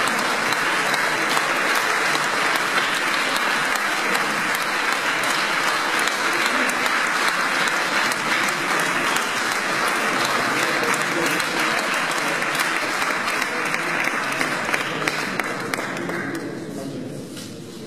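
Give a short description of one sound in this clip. A group applauds with steady clapping that fades away.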